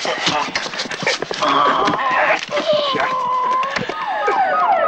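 Men grunt and scuffle in a close struggle.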